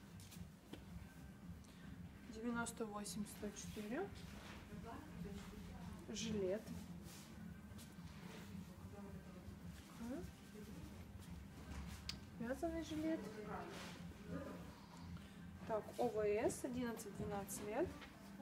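Fabric rustles softly as clothes are handled.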